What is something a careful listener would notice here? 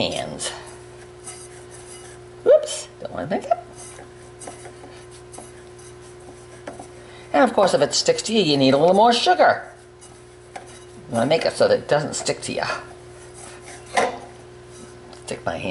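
Fingers rub butter and flour together in a bowl with a soft, gritty sound.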